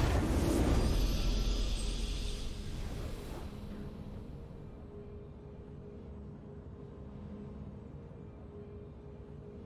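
A short triumphant video game fanfare plays and fades away.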